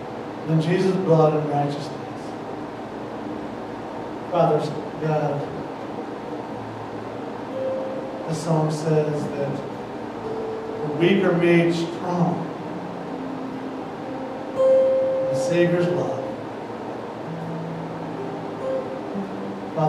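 An acoustic guitar is strummed softly.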